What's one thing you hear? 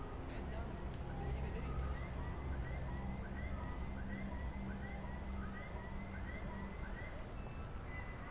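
A man's footsteps scuff slowly on pavement.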